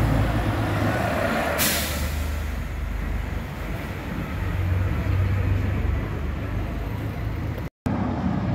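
A double-decker bus engine idles and rumbles nearby.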